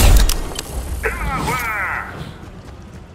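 A bright electronic chime plays.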